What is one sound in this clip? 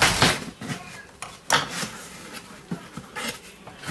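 Scissors clatter onto a countertop.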